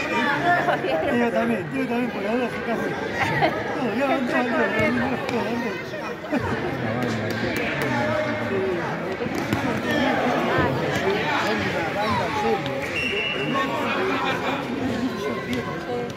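Children shout and call out across a large echoing hall.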